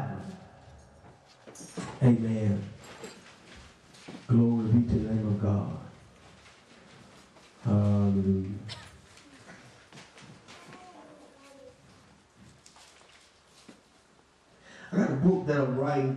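A man preaches into a microphone with animation, in loud bursts with pauses.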